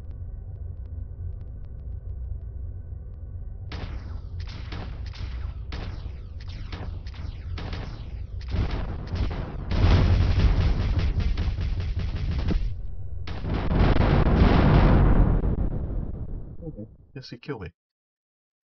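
A spacecraft engine roars with a deep, rushing rumble that swells and then fades away.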